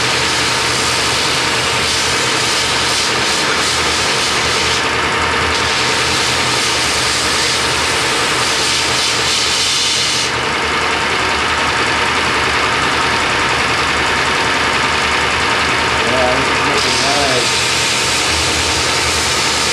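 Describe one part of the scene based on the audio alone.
A steel blade is ground against a belt grinder.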